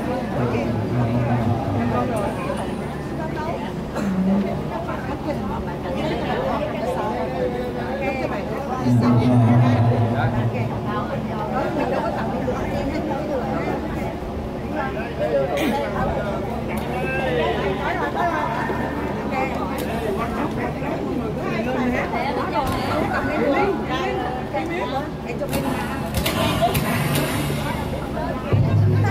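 A group of women sing together through a microphone.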